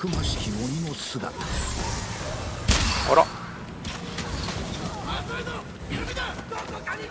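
Blades clash and slash in a fight.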